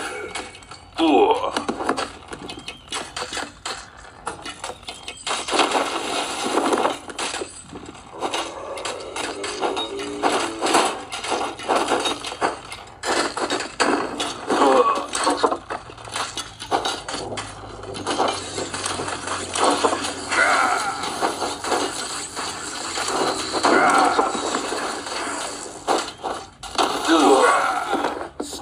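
Clangs, thuds and battle noises come from a game through a small speaker.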